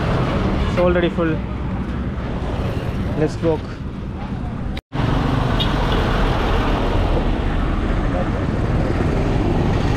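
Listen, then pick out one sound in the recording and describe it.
A heavy truck's engine rumbles past close by.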